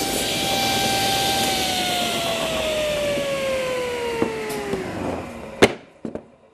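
A table saw's blade whirs and slowly winds down.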